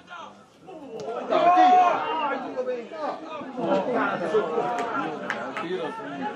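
Spectators nearby cheer and shout excitedly.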